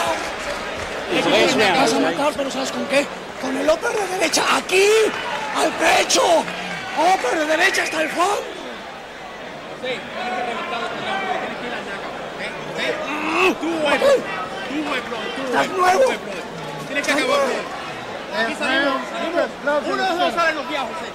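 A man shouts excitedly close by.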